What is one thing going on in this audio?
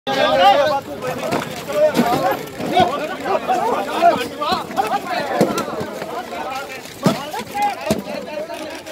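A crowd of men shout and argue loudly, close by.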